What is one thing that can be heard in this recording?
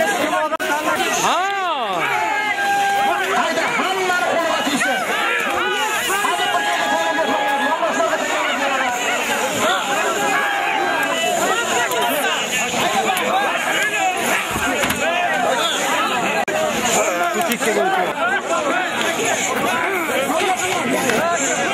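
A large crowd of men shouts and yells excitedly close by.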